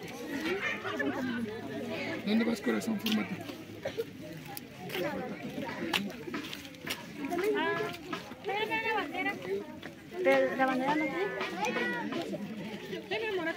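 A crowd of children and adults chatter outdoors close by.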